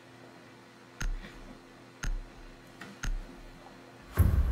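Electronic countdown beeps sound three times, once a second.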